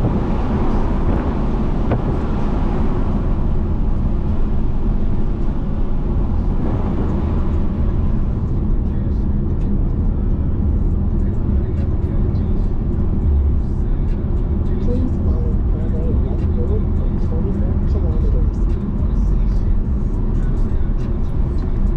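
A car engine hums and roars steadily as the car drives along.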